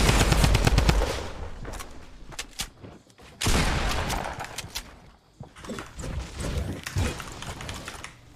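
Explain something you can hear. Wooden walls are built with quick clattering thuds.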